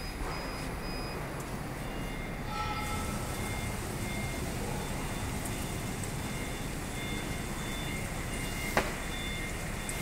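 A laser cutting machine hums steadily as its head moves back and forth.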